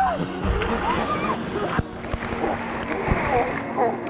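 Water splashes loudly as a person plunges off a slide into a pool.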